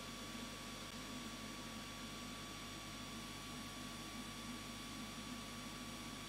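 An airbrush hisses as it sprays paint.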